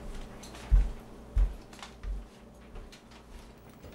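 Newspaper pages rustle.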